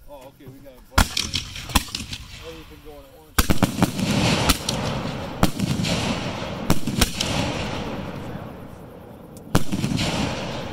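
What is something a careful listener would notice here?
Fireworks burst with loud booms.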